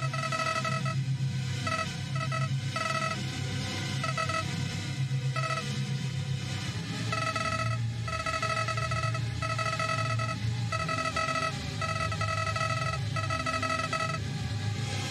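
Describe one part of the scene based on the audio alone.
Rapid electronic blips chatter in bursts.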